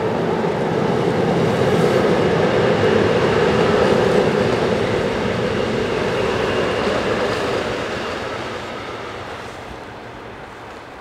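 An electric commuter train rumbles along a viaduct and fades away into the distance.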